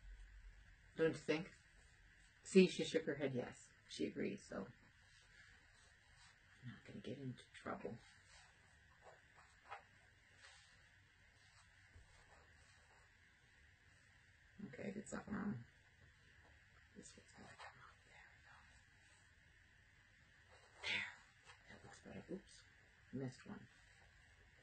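A middle-aged woman talks calmly and close by, in short bursts.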